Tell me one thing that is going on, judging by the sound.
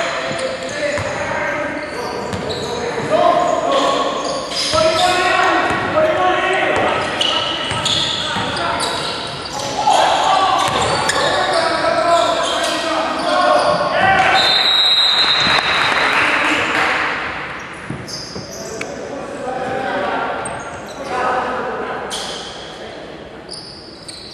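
Young men shout and call out to each other during play.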